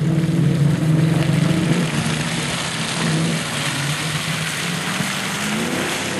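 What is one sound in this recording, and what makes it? A second off-road vehicle drives past close by.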